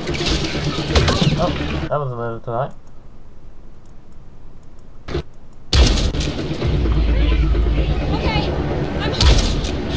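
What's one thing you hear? Gunshots crack in loud bursts with battle noise.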